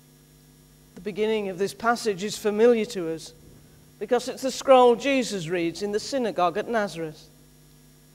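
A middle-aged man speaks clearly into a microphone in an echoing hall.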